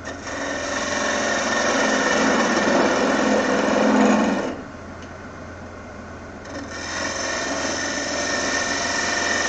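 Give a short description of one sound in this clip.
A chisel scrapes and shaves the spinning wood with a harsh hiss.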